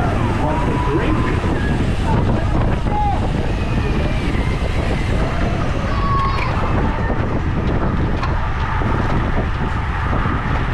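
Wind roars loudly past a fast-moving cyclist.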